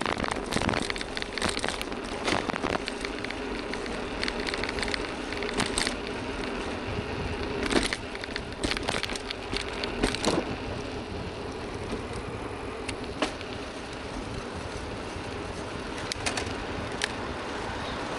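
A bicycle rattles and clicks over bumps in the road.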